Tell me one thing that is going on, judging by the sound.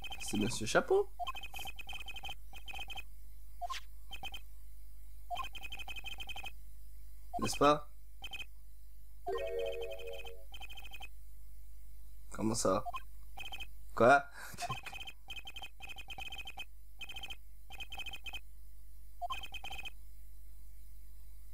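Short electronic blips tick rapidly in bursts.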